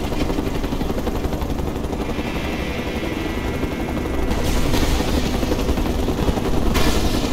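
Helicopter rotor blades thump steadily overhead.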